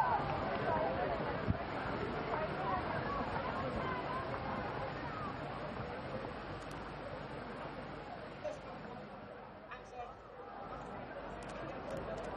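A large crowd cheers and whistles in an open stadium, loudest at first and slowly quietening.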